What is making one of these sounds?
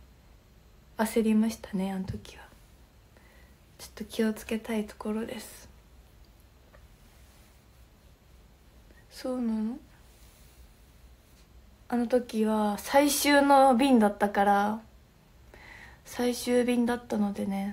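A young woman talks casually and close to the microphone, in short bursts with pauses.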